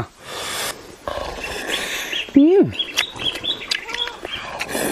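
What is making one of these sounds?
A young man slurps and chews food noisily.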